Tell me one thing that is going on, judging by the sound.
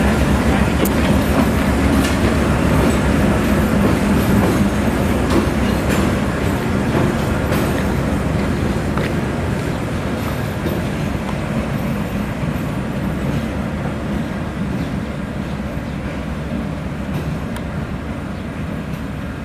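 A diesel locomotive engine rumbles steadily as it slowly approaches.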